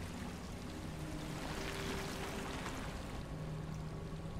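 Water pours down steadily nearby.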